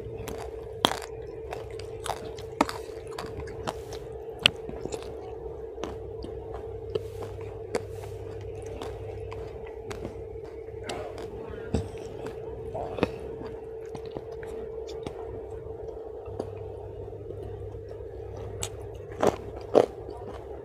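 Fingers squish and rustle through food on a leaf.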